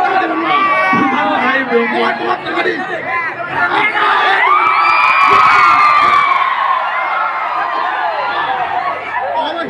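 A young man sings loudly into a microphone over a loudspeaker.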